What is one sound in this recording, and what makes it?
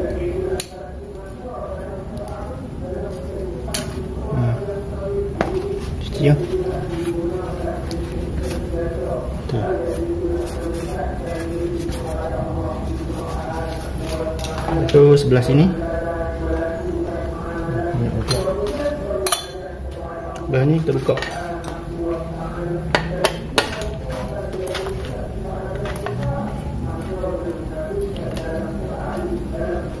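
Small metal parts clink and tap together.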